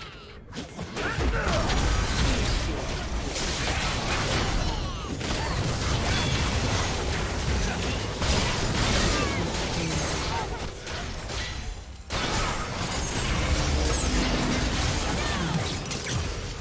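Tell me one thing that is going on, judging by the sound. Spell blasts and impacts burst and crackle during a fast game battle.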